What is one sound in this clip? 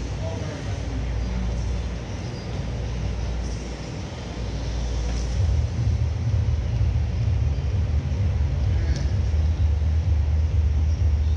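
Grappling bodies shuffle and thud softly on a padded mat.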